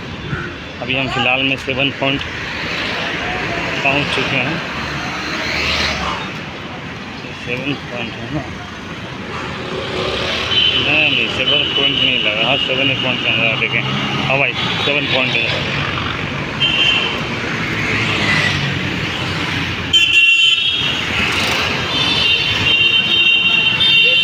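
Traffic hums along a street outdoors.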